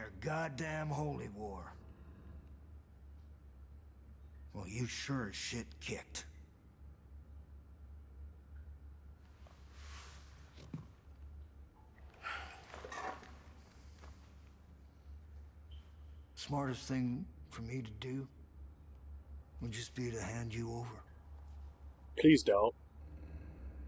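An older man speaks in a low, gruff voice, close by, in short bursts with pauses.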